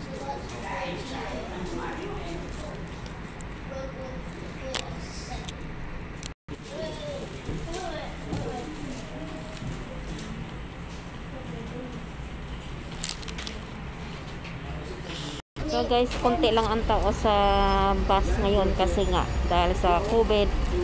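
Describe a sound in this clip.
A woman speaks calmly close to the microphone.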